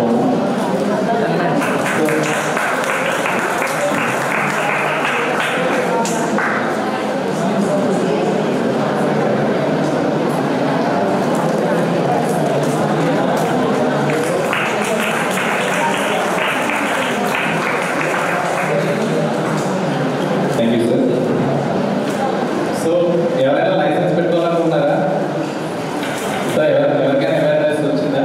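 A young man speaks steadily through a microphone and loudspeaker in an echoing hall.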